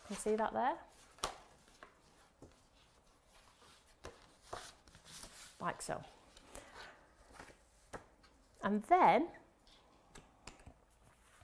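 Stiff paper rustles as hands fold and handle it.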